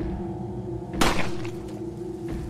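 A gunshot cracks sharply once.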